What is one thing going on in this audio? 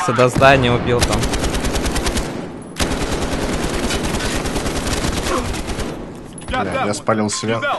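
A rifle fires in rapid automatic bursts.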